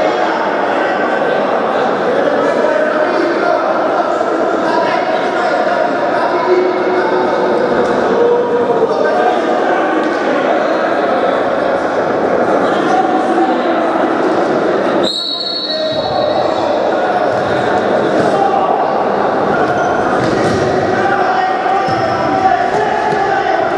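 Players' shoes squeak on the court floor.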